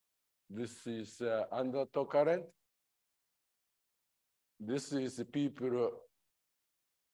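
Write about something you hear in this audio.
A man speaks calmly through a microphone, presenting in short phrases.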